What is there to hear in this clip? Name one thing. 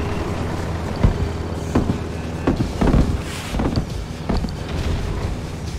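Explosions boom and crack.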